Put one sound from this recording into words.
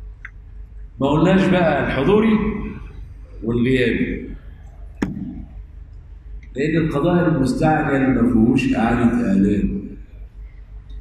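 An older man speaks calmly into a microphone, with pauses.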